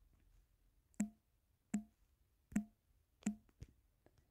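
Soft key clicks tap out a few letters.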